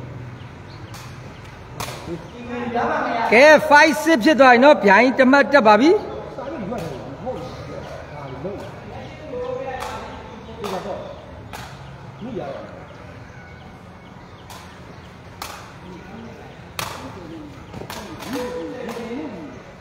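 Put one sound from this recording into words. A ball is kicked with sharp thuds, echoing under a roof.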